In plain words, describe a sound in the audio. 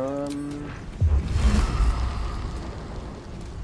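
A magic blast booms with a deep rumble.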